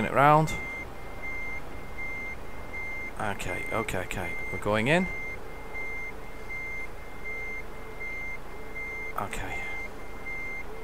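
A truck's reversing alarm beeps steadily.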